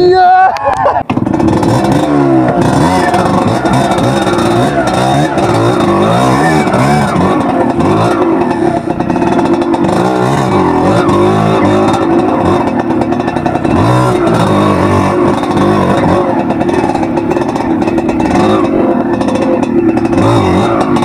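A dirt bike engine revs and idles up close.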